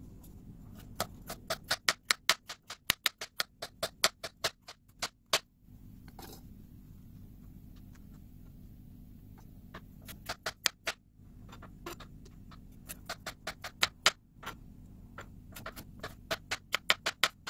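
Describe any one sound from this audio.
A knife chops through a carrot onto a plastic board with quick knocks.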